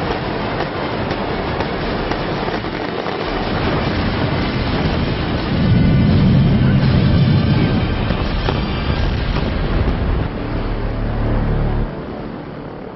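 Tall buildings collapse with a deep, roaring rumble.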